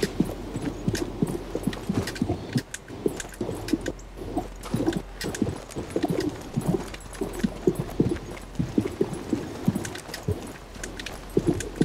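Boots run quickly over stone paving.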